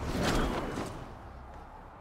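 A game effect bursts with a bright whooshing chime.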